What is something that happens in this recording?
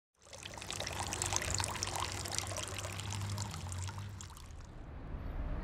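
Water pours into a glass and fizzes.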